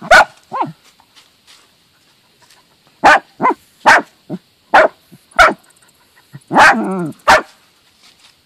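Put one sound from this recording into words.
A dog barks sharply nearby.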